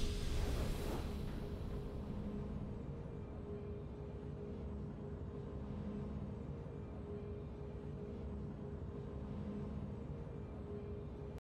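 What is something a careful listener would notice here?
Soft, calm game music hums along steadily.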